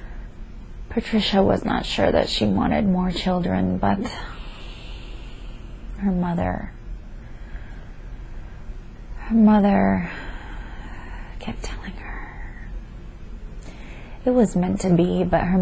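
A young woman mumbles and talks drowsily close by.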